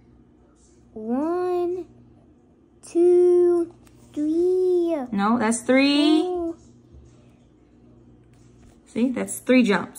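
A young child speaks aloud nearby in drawn-out, sing-song words with pauses.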